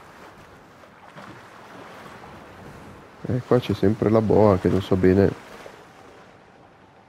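Water splashes and rushes around a moving boat.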